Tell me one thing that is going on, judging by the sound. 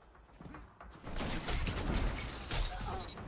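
A gun fires a burst of loud shots.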